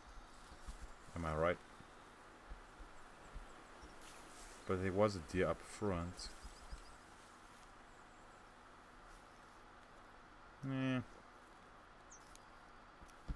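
Footsteps rustle through low undergrowth.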